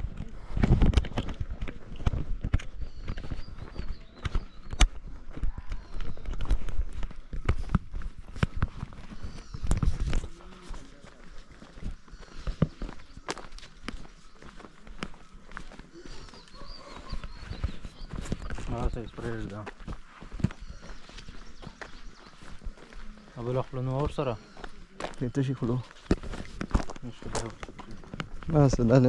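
Footsteps crunch steadily on a dirt path outdoors.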